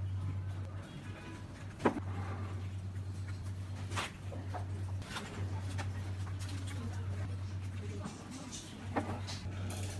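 A glass bowl clinks and knocks against a table.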